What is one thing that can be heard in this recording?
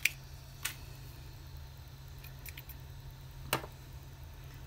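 Small objects tap and click softly on a hard table.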